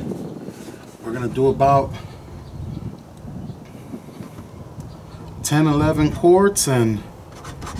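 A man speaks casually, close by.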